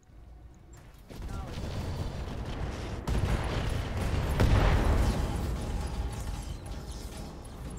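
An explosion booms and rumbles heavily.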